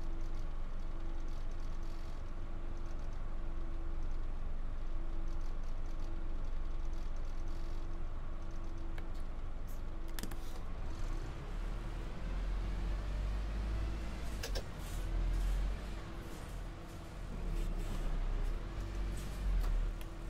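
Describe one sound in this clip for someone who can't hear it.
A bus engine hums steadily and grows louder as the bus picks up speed.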